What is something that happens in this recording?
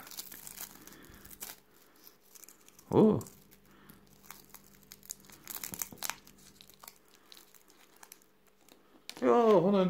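Plastic wrapping crinkles and rustles between fingers.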